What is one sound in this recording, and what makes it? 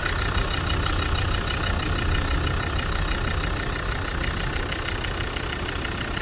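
A car engine idles close by with a steady, rough rumble.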